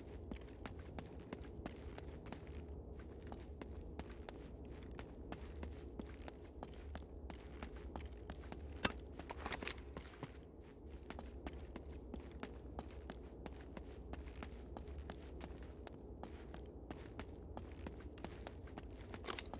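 Footsteps run quickly over stone floors in a large echoing hall.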